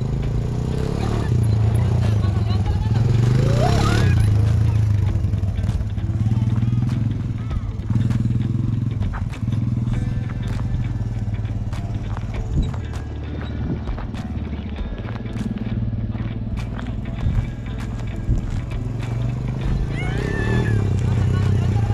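A quad bike engine revs and roars close by.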